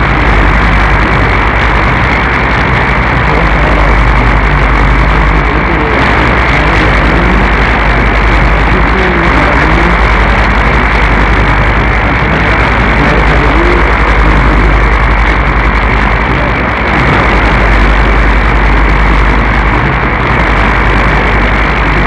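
A shortwave radio receiver hisses with steady static and faint warbling tones.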